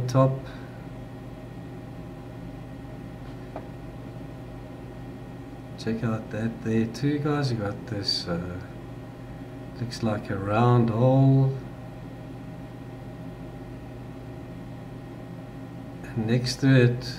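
A man speaks calmly into a microphone, heard close up, with pauses between phrases.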